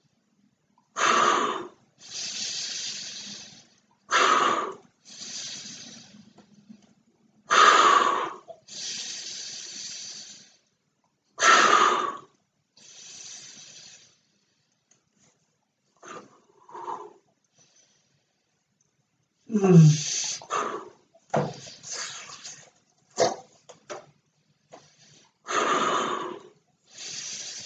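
A man blows forcefully into a balloon in long, repeated breaths.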